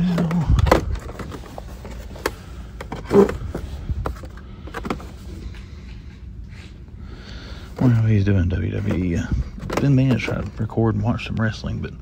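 A hand brushes and rattles plastic toy packaging on a hook.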